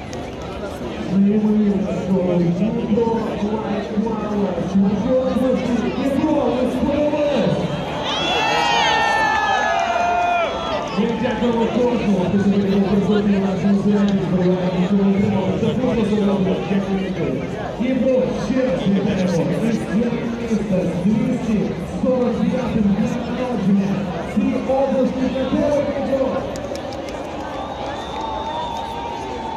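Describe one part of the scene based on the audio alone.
Loud music with a deep pulsing melody plays over loudspeakers outdoors.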